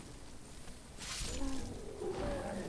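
A weapon strikes a giant insect with a heavy thud.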